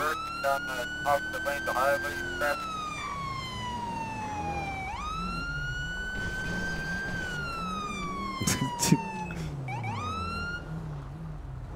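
A siren wails, rising and falling in pitch.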